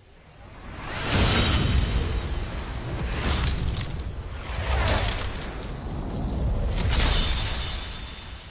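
A magical blast roars and crackles loudly.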